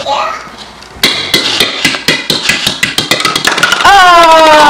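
A ball bounces and rolls across a hard tile floor.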